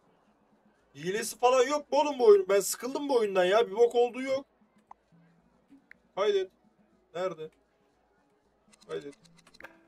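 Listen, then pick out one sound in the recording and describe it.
A young man speaks close to a microphone, in short bursts.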